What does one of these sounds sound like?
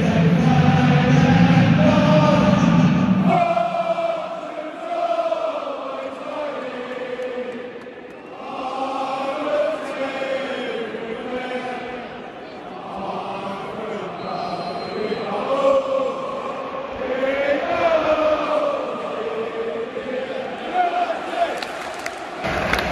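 A large stadium crowd sings a chant together, echoing loudly.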